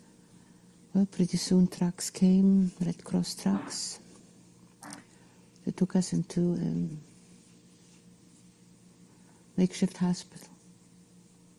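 An elderly woman speaks calmly and slowly, close to a microphone, with long pauses.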